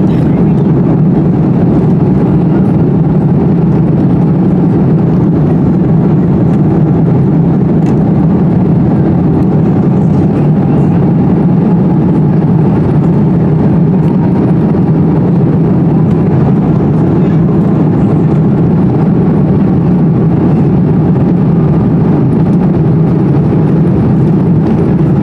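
Airliner wheels rumble over the runway.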